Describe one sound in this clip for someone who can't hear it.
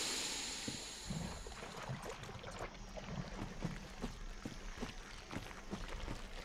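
Armoured footsteps splash through shallow water.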